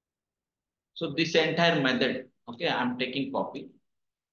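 A young man speaks calmly and close to a microphone.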